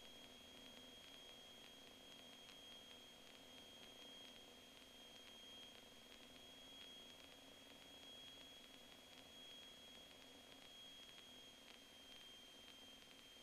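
A small plane's propeller engine drones steadily from inside the cockpit.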